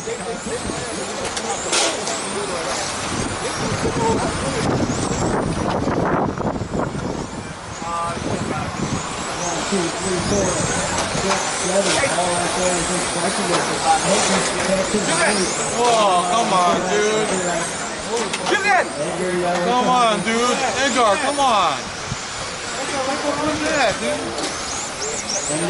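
Small electric model cars whine at high speed around a track.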